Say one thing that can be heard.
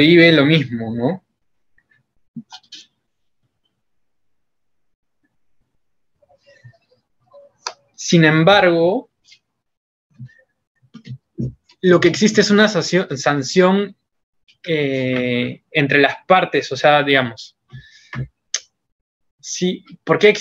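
A young man speaks calmly over an online call, pausing now and then.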